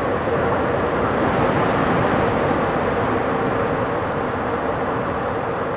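A train's roar grows louder and more echoing inside a tunnel.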